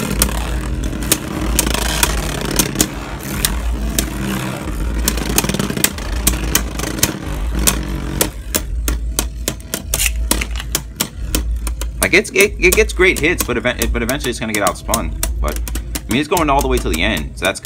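Spinning tops clack together in quick, sharp knocks.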